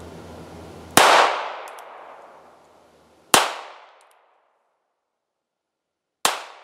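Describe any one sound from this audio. A handgun fires loud shots that echo away outdoors.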